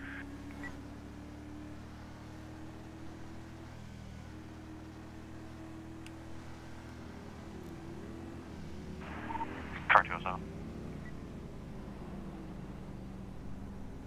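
A car engine hums steadily as it drives along a road.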